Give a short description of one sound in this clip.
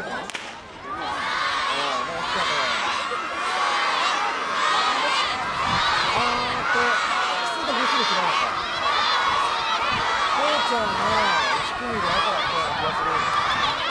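A crowd of children cheer and scream excitedly outdoors.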